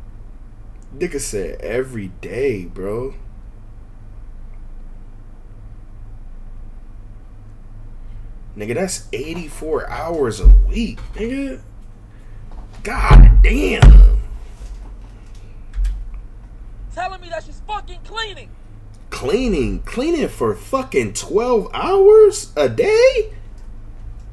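A young man talks into a phone microphone with feeling, in bursts with pauses.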